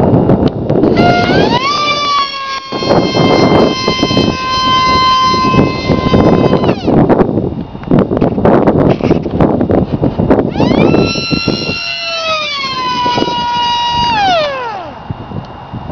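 A small model plane's electric motor whines, rising and falling in pitch as it flies overhead.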